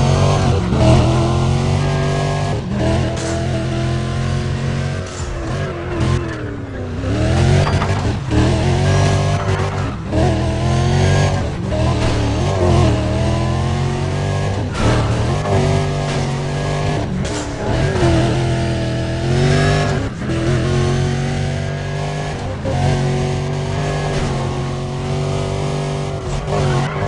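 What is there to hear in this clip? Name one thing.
A sports car engine roars loudly, revving up and down as the car speeds along.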